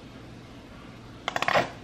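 A ketchup bottle squirts with a sputter.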